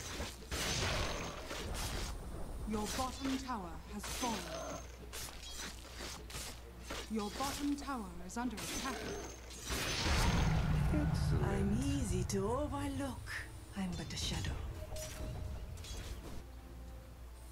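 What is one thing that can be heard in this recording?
Game combat sounds of clashing blows and crackling spells ring out in quick bursts.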